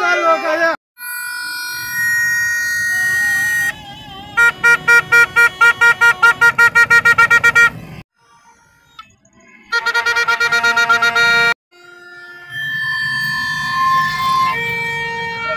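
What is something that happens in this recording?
A plastic horn blares loudly in short repeated blasts.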